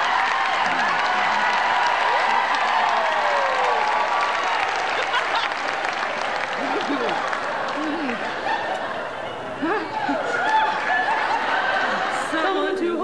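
A group of women sing together in close harmony through microphones in a large hall.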